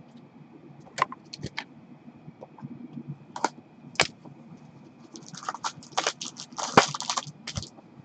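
A cardboard box taps and rustles as it is handled.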